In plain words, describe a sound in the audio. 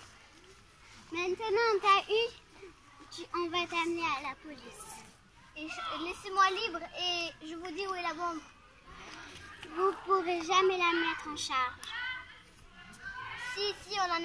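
Young girls talk with animation nearby, outdoors.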